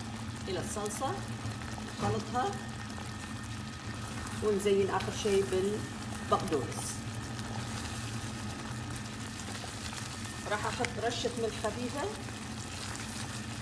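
A spatula stirs a thick sauce in a pan with soft squelching.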